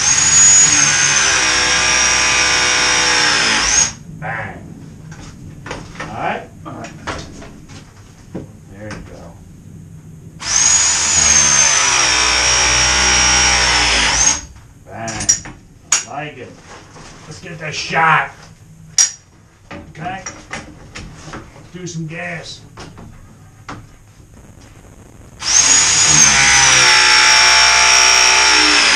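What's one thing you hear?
A power press tool whirs loudly as it crimps a pipe fitting.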